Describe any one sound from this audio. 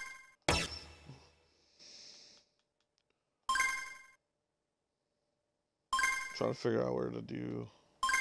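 Short electronic menu chimes ring out.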